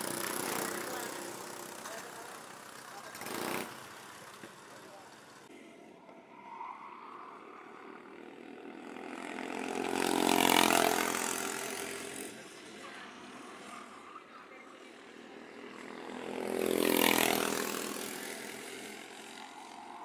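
Kart engines whine loudly as karts race past, rising and fading.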